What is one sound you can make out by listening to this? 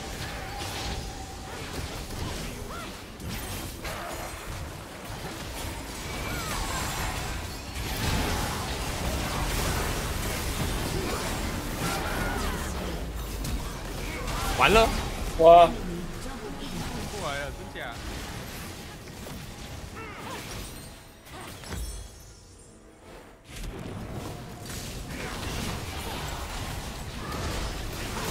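Video game spell effects whoosh, crackle and explode in a fast fight.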